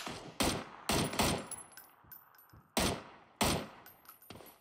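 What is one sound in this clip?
A rifle fires several loud shots that echo briefly.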